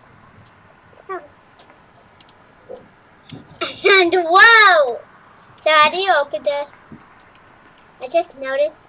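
A young boy talks with animation into a microphone, at times in a high, excited voice.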